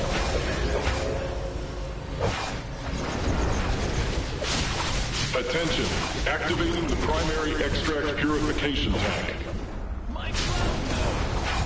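Video game fighters clash with thuds and blows.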